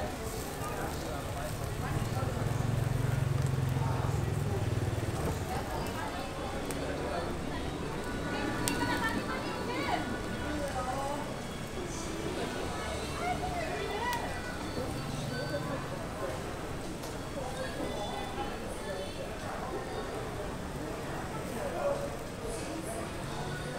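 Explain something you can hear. A charcoal fire roars and crackles.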